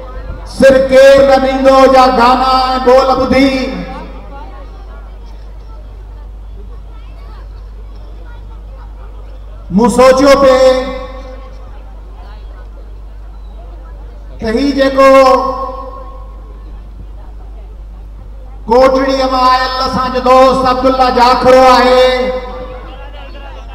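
A man sings loudly into a microphone through loudspeakers, in bursts with pauses between.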